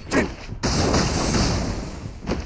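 A fiery blast bursts with a loud crackle.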